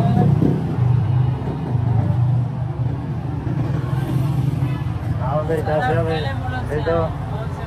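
Small motorcycles pass by on the street.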